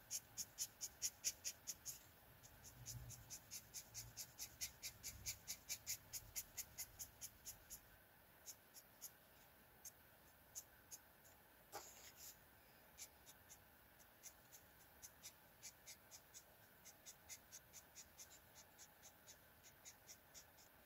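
A felt-tip marker squeaks and scratches across paper in quick, repeated strokes.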